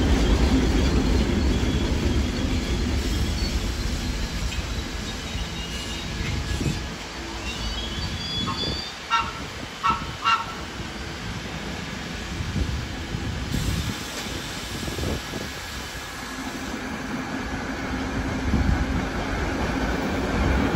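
A subway train rolls past on steel rails with a low rumble.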